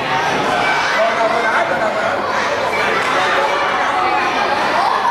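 A crowd of children and adults chatters loudly in an echoing room.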